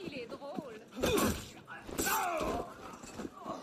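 Bodies thud and grapple in a brief scuffle.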